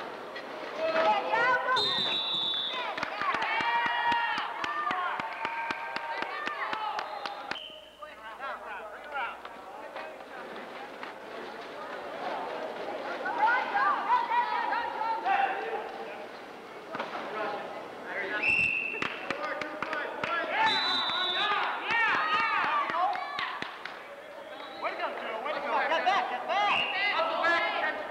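Many people shout and cheer in a large echoing hall.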